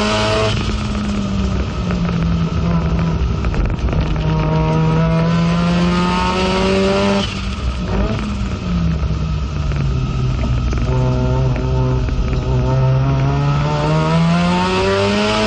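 A racing car engine roars loudly from inside the cabin, revving up and down.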